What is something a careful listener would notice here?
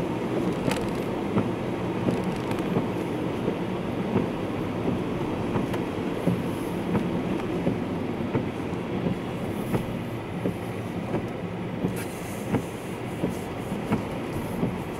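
Raindrops tap on a car's windscreen.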